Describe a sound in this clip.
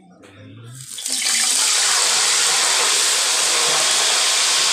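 Fish sizzles and crackles loudly in hot oil.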